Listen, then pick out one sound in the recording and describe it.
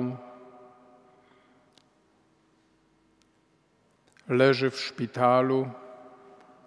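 An elderly man speaks slowly into a microphone in a large echoing hall.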